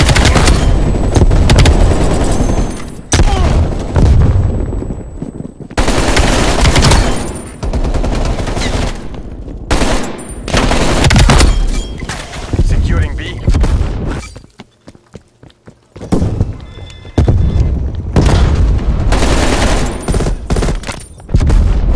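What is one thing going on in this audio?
Rapid gunfire bursts out in loud, sharp volleys.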